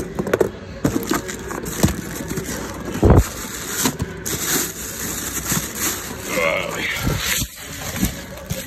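Cardboard rustles and scrapes as a hand handles boxes.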